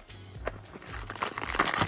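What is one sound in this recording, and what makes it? A cardboard box is pulled open with a scrape.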